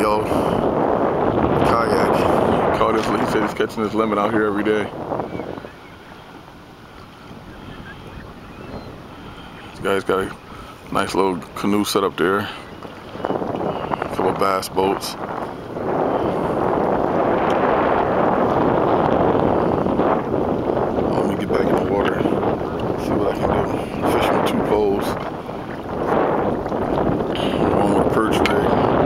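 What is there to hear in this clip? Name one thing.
Wind blows hard across the microphone out on open water.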